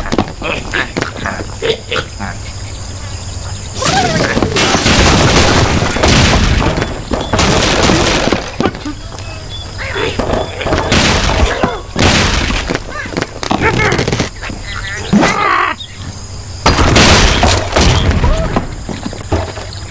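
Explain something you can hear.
A loud blast booms as a large bird bursts.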